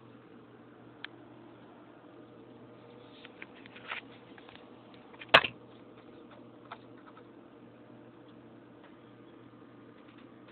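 A hamster's small claws scratch and patter on a hard surface.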